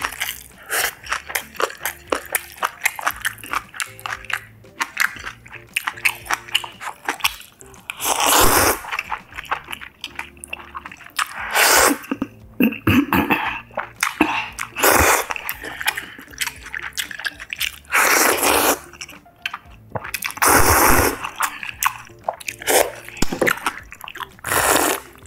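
Chopsticks and a spoon clink against a bowl.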